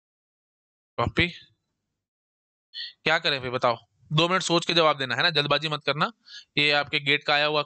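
A man speaks calmly and clearly into a close microphone, explaining.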